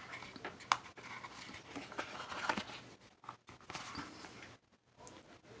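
Paper and card rustle and tap as hands handle them.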